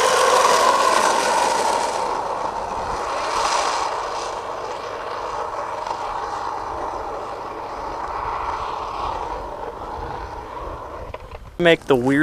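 Skateboard wheels roll and rumble on asphalt.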